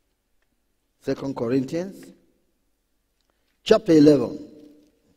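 A man speaks with emphasis into a microphone in a large echoing hall.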